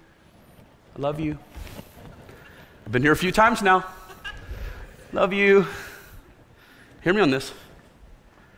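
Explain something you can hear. A man speaks with animation through a microphone in a large hall, in short bursts with pauses.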